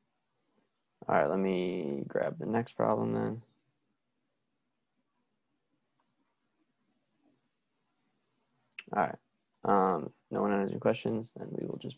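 A young man explains calmly into a close microphone, with pauses.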